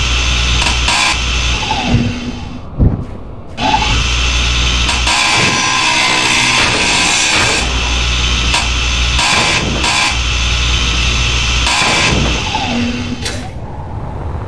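A power grinder whines as it grinds metal.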